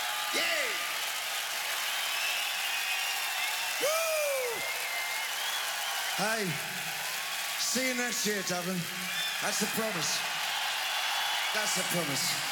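A large crowd cheers and whistles loudly in a big echoing hall.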